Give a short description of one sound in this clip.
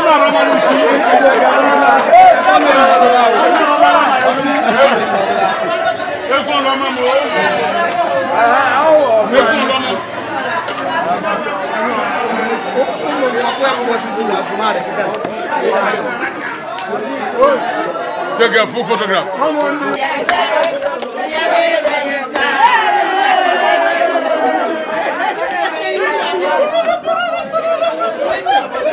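A crowd of men and women chatter loudly nearby.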